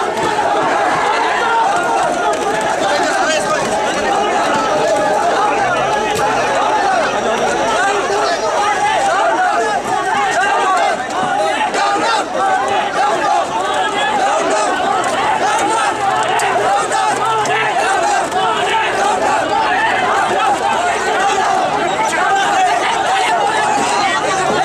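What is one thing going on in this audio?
A large crowd shouts and clamours close by, outdoors.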